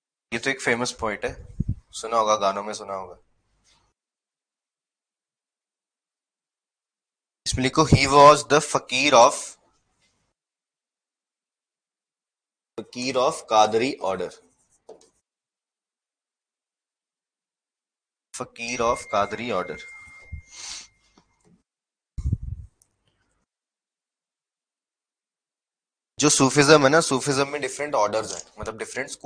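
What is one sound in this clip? A man speaks calmly into a close microphone, in bursts with pauses.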